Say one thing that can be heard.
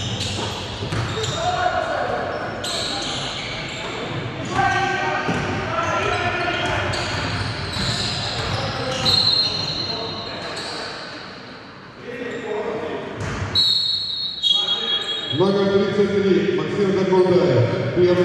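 Young players and spectators call out and shout in a large echoing hall.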